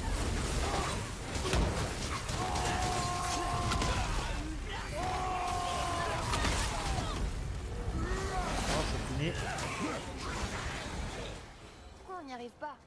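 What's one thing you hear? Weapons clash and blasts boom in a loud, chaotic fight.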